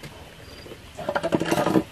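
A coil of rope rustles and scrapes against a rubber tyre.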